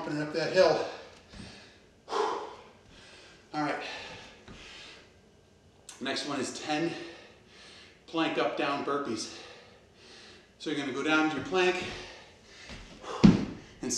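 A middle-aged man talks calmly in a room.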